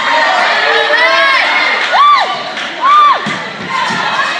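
Young people shout loudly nearby.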